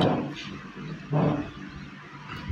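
A chair scrapes on the floor as a man stands up.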